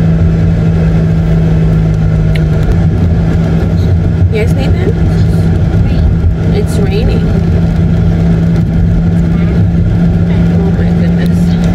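A car engine hums steadily with road noise.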